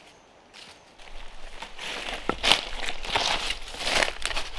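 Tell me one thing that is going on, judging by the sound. Dry leaves crackle and rustle close by.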